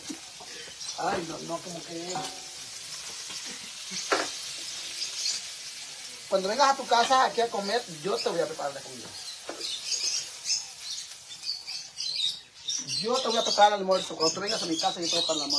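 A middle-aged woman talks casually nearby.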